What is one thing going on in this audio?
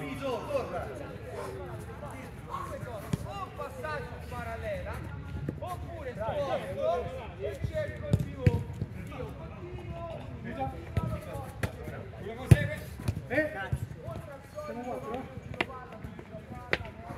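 Men shout and call out to each other across an open pitch.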